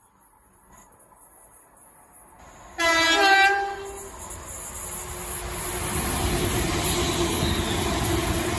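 A train rumbles past close by, growing louder.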